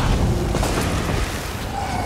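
A crackling electric spell bursts with a loud zap.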